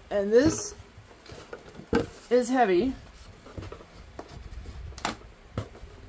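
A cardboard lid thumps as it is lifted and lowered.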